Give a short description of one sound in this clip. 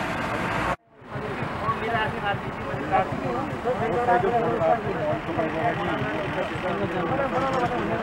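Men talk at close range outdoors.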